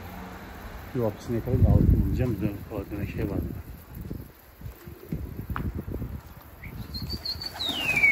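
Pigeons coo nearby.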